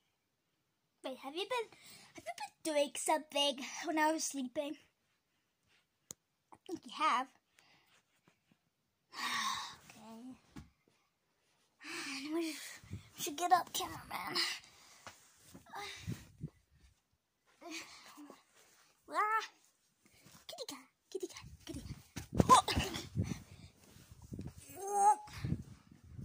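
A young boy talks and shouts excitedly close by.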